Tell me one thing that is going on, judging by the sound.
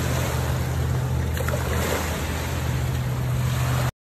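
Waves wash against rocks.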